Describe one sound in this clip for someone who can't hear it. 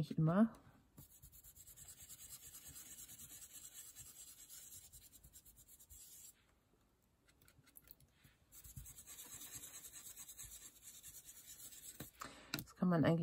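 A brush scrubs and dabs softly on paper.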